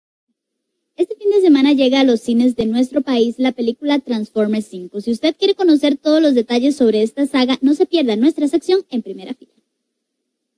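A young woman speaks with animation into a microphone, close by.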